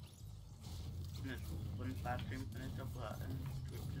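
A pickaxe chops at a tree with dull wooden knocks.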